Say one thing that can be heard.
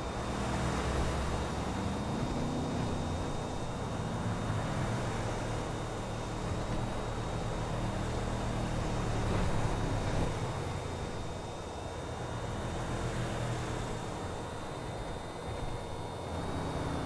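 Tyres roll over rough asphalt with a steady rumble.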